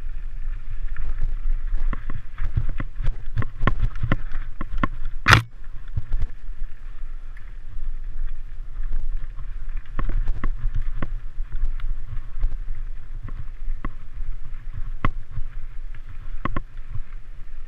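A bicycle chain and frame clatter over bumps.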